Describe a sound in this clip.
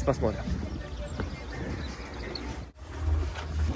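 A man talks outdoors.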